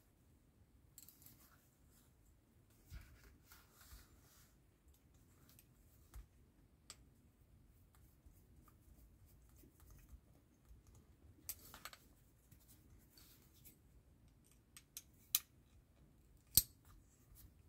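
A small screwdriver clicks and scrapes faintly against a screw.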